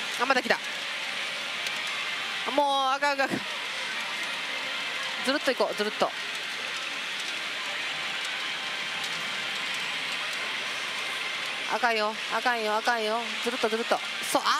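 Metal balls rattle steadily through a pachinko machine.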